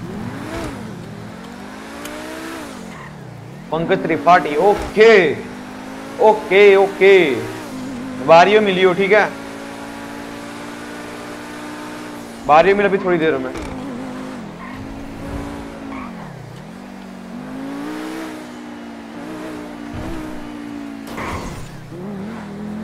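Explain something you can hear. A car engine hums and revs, rising and falling in pitch.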